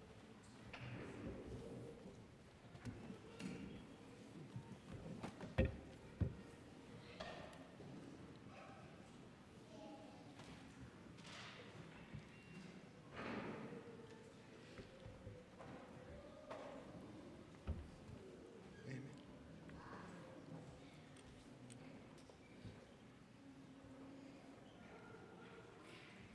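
A man speaks quietly in a large echoing hall.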